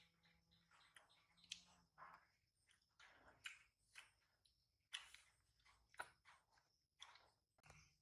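A small monkey chews and smacks its lips while eating fruit.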